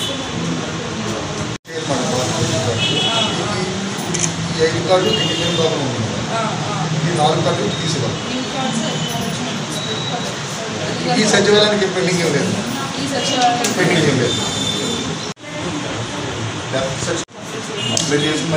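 A woman talks calmly, up close.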